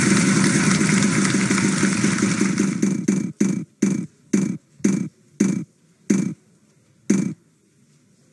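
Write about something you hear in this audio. A prize wheel clicks rapidly as it spins, the clicks slowing down until it stops.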